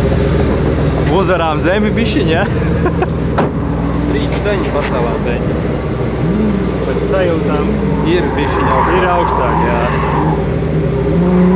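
A young man talks casually, close by, outdoors.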